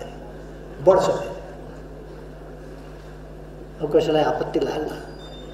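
An elderly man speaks forcefully into microphones, with short pauses.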